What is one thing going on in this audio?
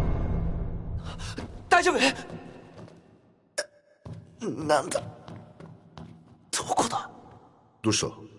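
A young man groans and speaks in a strained, dazed voice, close by.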